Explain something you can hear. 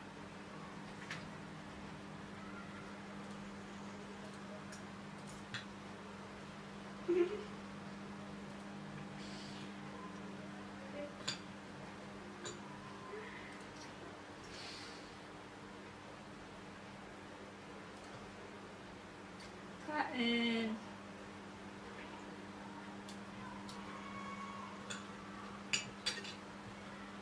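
Cutlery clinks and scrapes against a plate.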